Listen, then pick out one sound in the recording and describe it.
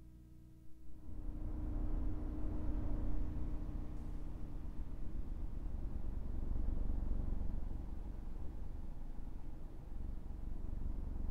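A truck drives along a road with a loud engine rumble and tyre roar.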